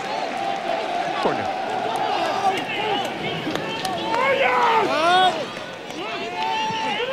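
A large crowd whistles shrilly in an open stadium.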